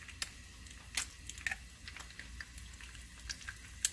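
A raw egg drops into a hot pan with a sizzle.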